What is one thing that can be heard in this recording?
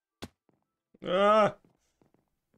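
A young man makes a short, loud exclamation close to a microphone.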